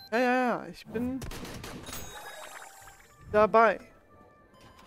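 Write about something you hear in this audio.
A bright, bouncy chime plays.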